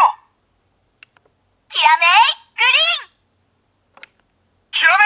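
A plastic button clicks.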